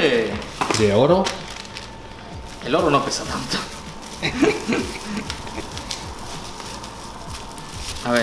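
Plastic wrapping crinkles.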